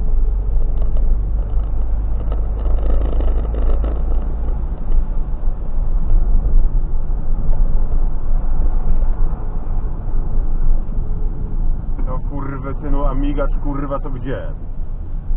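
A car engine rumbles low and steadily from inside the car.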